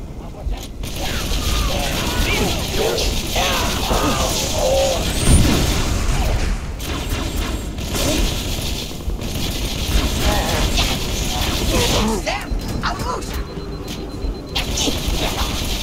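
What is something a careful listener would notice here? Energy gunfire crackles in rapid bursts.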